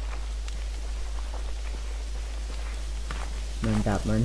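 Footsteps run over leafy forest ground.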